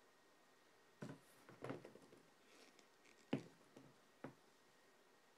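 A shoe is handled and shifted about with light knocks and rustles.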